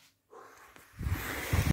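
A hand brushes close against the microphone with a rustling rumble.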